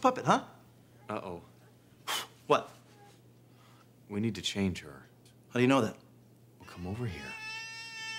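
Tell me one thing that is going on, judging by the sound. A man speaks in short, calm phrases nearby.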